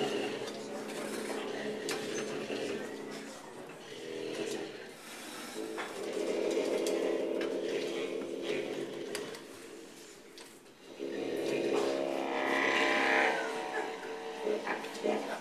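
A saxophone plays a wailing, squealing line up close.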